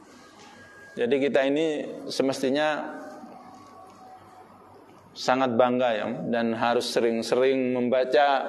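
A man speaks into a microphone in a calm, measured voice, with short pauses.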